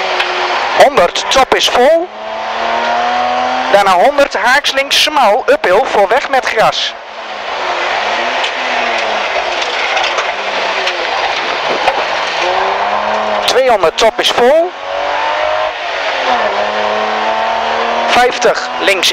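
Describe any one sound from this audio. A rally car engine roars loudly, revving up and down through gear changes.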